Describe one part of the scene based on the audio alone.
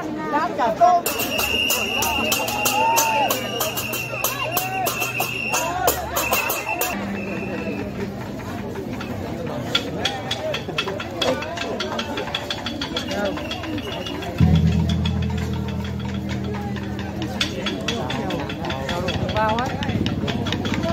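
Drums and cymbals beat rapidly in a procession.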